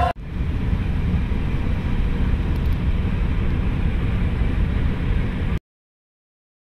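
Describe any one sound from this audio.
A car engine hums and tyres rumble steadily on a highway, heard from inside the car.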